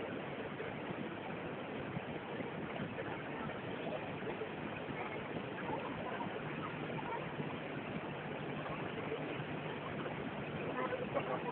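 Water churns and rushes steadily.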